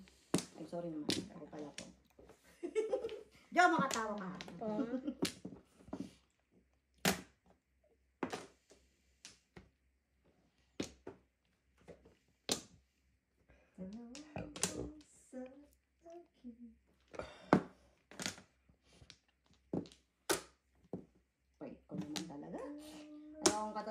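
Tiles click and clack sharply against each other on a table.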